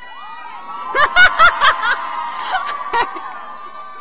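A woman in the crowd shouts and cheers loudly.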